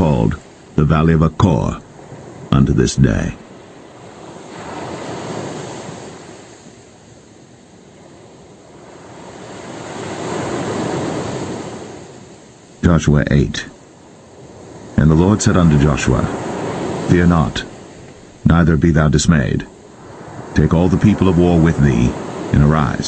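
Waves wash softly onto a pebble beach and draw back.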